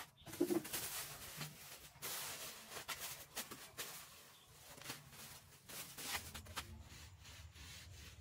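A plastic sheet crinkles and rustles.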